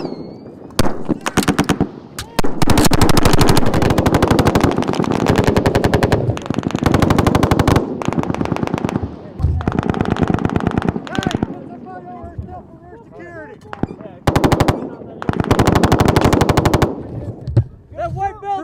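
Machine guns fire in rapid, loud bursts outdoors.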